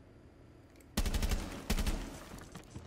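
Rapid gunfire bursts loudly in a video game.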